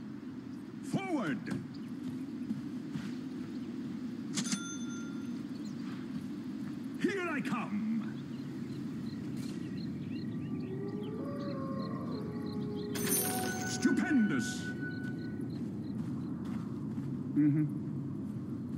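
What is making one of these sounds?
Magical spell effects whoosh and chime in short bursts.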